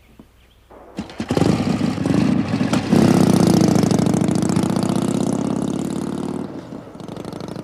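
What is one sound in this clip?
A motorcycle engine starts and roars loudly.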